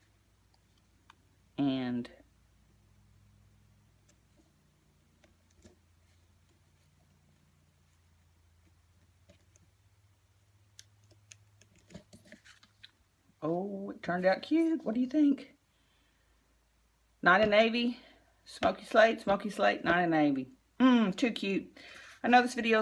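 Paper rustles softly as a card is handled.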